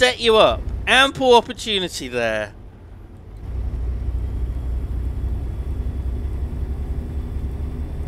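A truck engine rumbles low and steadily while driving.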